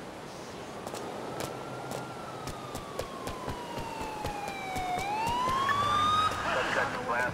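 A police siren wails, falling and then rising in pitch.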